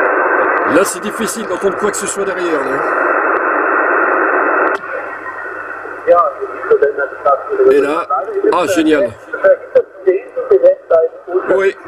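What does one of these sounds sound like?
A man's voice comes through a radio loudspeaker, crackly and distorted.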